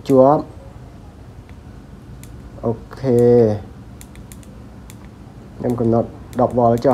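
Fingers handle a small circuit board with soft clicks and taps.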